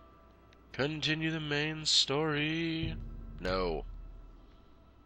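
Bright musical menu chimes ring out briefly.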